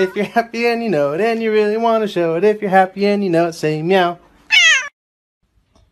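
A cat meows repeatedly, close by.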